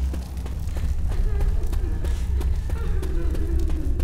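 A fire roars and crackles nearby.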